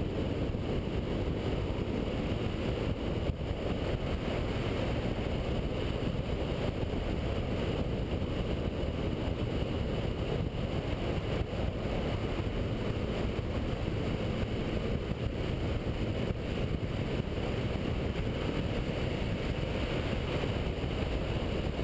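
Wind roars loudly past a motorcycle rider.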